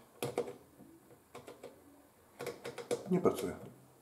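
A washing machine dial clicks as it is turned.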